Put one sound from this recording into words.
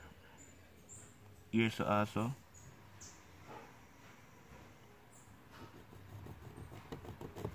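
A pencil scratches lightly along a piece of wood.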